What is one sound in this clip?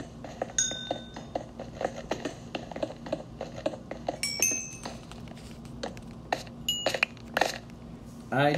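A pickaxe chips at stone with quick, repeated taps.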